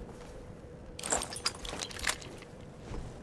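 Metal clicks and clacks as a rifle is picked up and handled.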